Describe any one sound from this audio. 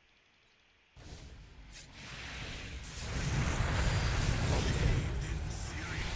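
Spells and weapons clash loudly in a game battle, with bursts and blasts.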